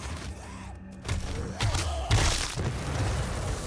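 A shotgun fires with heavy booming blasts.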